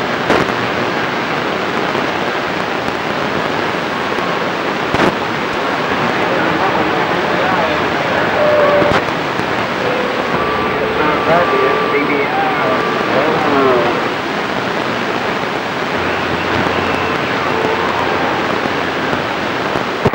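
Radio static hisses steadily from a receiver's loudspeaker.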